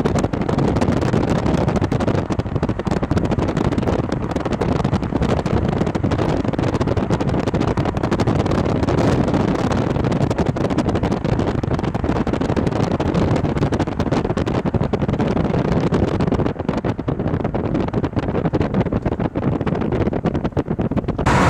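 Strong wind rumbles and buffets outdoors.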